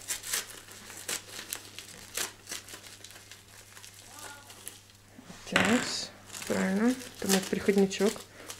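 Paper crinkles and rustles in a man's hands.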